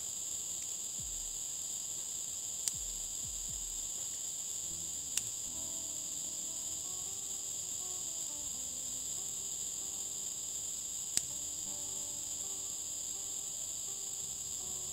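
Leaves rustle softly as plants are picked by hand.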